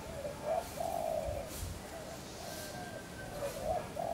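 A monkey drags a cloth rustling over grass.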